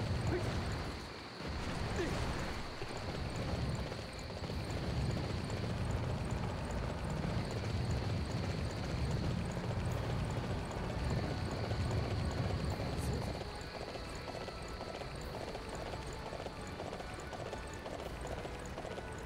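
A horse gallops with heavy, rhythmic hoofbeats.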